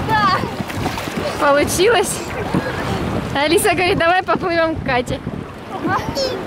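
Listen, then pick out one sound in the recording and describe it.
A young girl squeals excitedly.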